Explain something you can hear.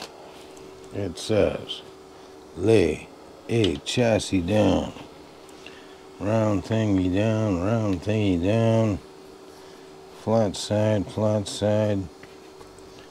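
An older man talks calmly close by.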